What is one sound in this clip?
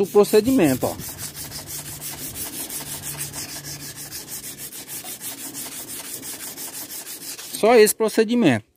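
Sandpaper rubs back and forth along a metal blade in quick, even strokes.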